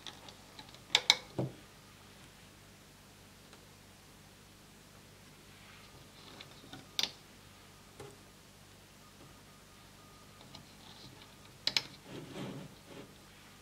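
Rubber bands snap and click against a plastic loom.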